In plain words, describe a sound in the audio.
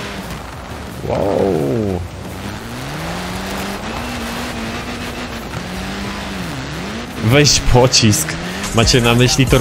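A car engine revs and whines as it races along.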